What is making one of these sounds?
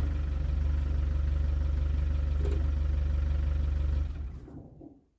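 A vehicle engine idles with a low steady rumble, then shuts off.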